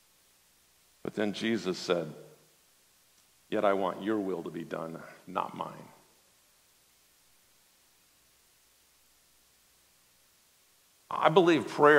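A man speaks calmly and deliberately through a microphone, with long pauses.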